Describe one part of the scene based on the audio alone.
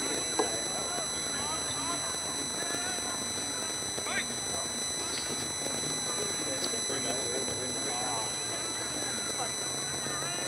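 Men shout and call out to each other outdoors.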